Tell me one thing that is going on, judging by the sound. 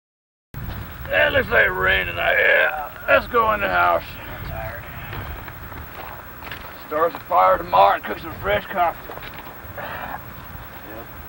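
A young man talks loudly with animation nearby.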